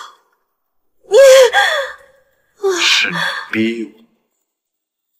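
A young man answers in a low, tense voice close by.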